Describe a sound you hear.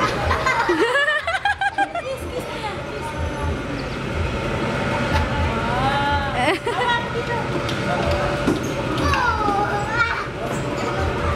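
A woman talks playfully to a small child close by.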